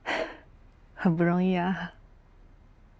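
A young woman speaks cheerfully with a laugh.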